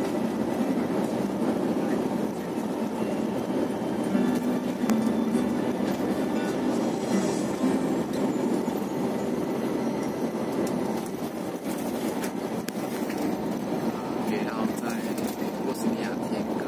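A bus engine hums steadily as it drives.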